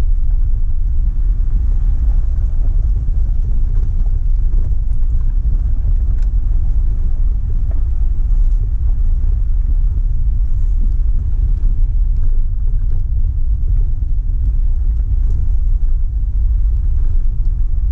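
Tyres roll and crunch over a gravel track.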